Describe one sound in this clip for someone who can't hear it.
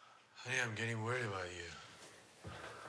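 A man speaks quietly and calmly, close by.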